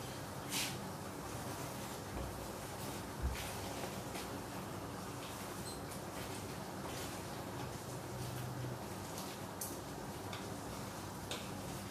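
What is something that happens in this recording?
A spatula scrapes and clinks in a frying pan.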